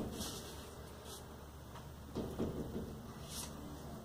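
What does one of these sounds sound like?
A wooden board knocks down onto a padded table.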